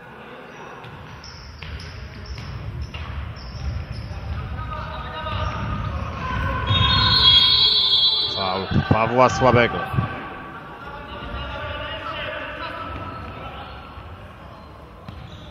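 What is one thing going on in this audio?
A crowd murmurs and cheers in an echoing hall.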